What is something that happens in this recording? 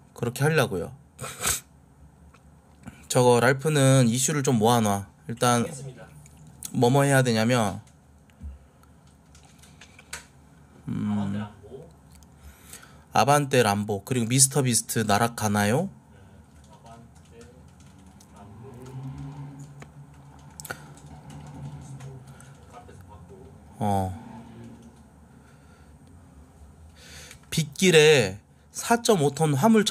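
A young man talks casually into a close microphone, in short bursts with pauses.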